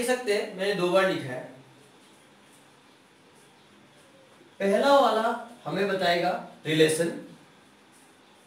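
A young man speaks calmly nearby, explaining in short bursts.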